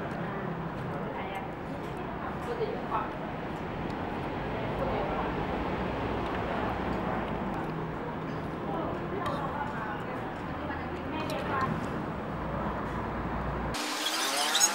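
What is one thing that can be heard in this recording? A man slurps noodles noisily.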